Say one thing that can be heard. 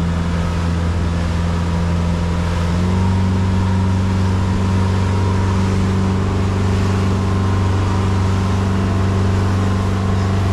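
A boat's outboard engine drones steadily and loud, rising slightly in pitch.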